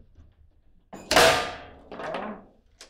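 A shot slams the ball hard into a foosball goal.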